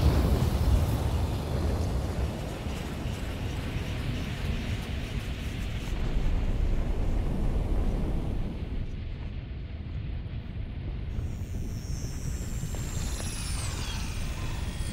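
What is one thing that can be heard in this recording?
A deep, heavy rumble roars steadily throughout.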